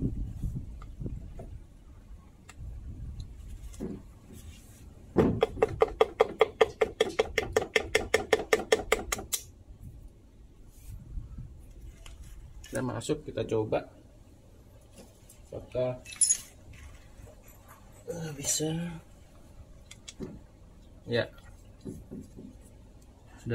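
Metal tools clink and scrape against an engine casing.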